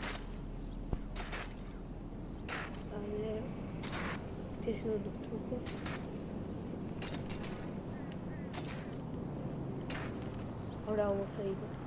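Bicycle tyres roll steadily over asphalt.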